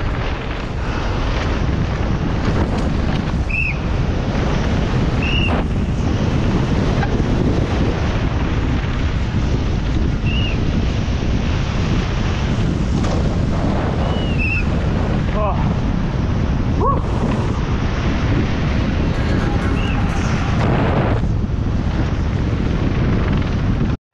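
Wind rushes loudly past a fast-moving rider outdoors.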